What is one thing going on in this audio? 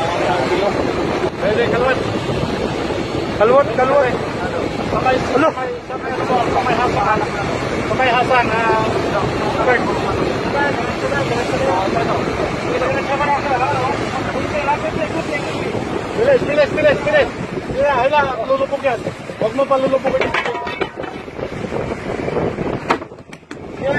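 Outboard motors roar steadily.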